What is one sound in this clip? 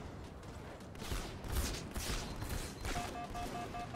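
Gunshots crack nearby in short bursts.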